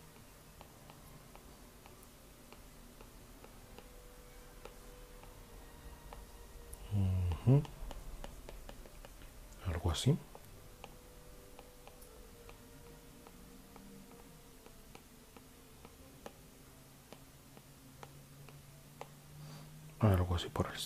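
A stylus scratches softly on a tablet surface.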